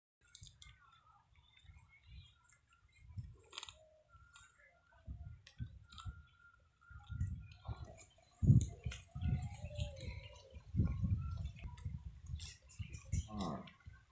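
A buffalo tears and chews dry grass close by.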